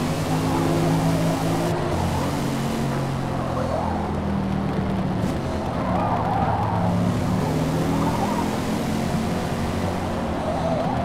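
Tyres screech while a car drifts through bends.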